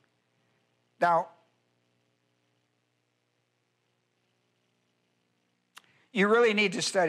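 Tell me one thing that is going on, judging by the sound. An elderly man speaks into a microphone in short bursts.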